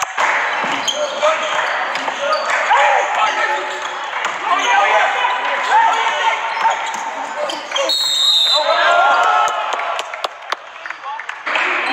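A crowd of people murmurs and calls out in a large echoing hall.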